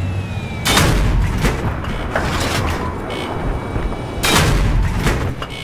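Heavy explosions boom in sudden bursts.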